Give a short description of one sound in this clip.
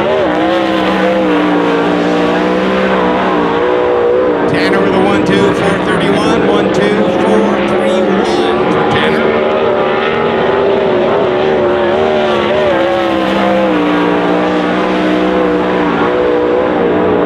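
A racing car engine roars loudly as it speeds around a dirt track.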